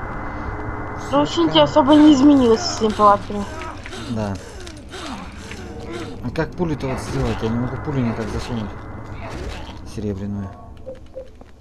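A young man talks with animation into a headset microphone, close up.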